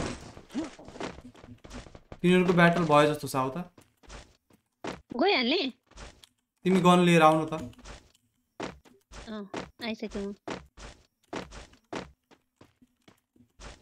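Quick footsteps run over grass and ground.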